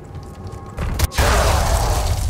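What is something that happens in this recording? A loud explosion booms suddenly.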